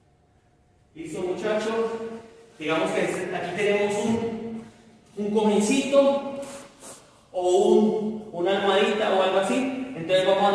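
A young man speaks calmly and clearly nearby.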